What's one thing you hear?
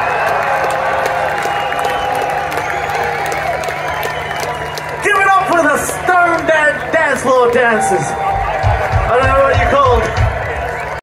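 A rock band plays loudly through big outdoor speakers.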